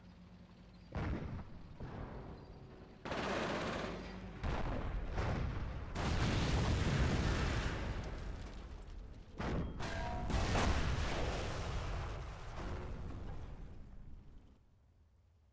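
Explosions boom and rumble in quick succession.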